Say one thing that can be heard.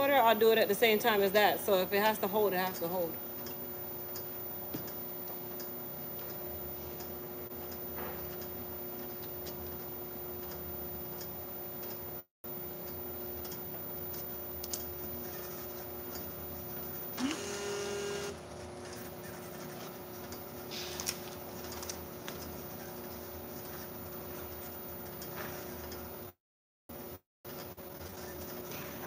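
A labelling machine hums steadily.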